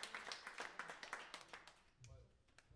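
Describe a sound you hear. Drums and cymbals tap out a quick rhythm.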